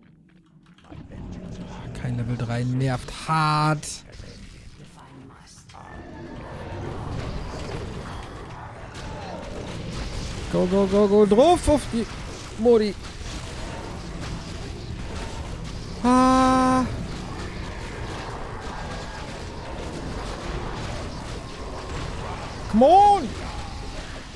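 Game battle sounds clash and boom.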